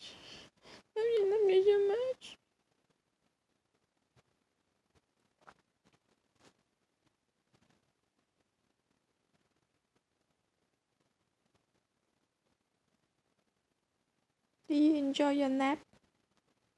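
A cat meows loudly and plaintively up close.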